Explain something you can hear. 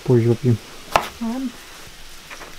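A knife chops vegetables on a cutting board.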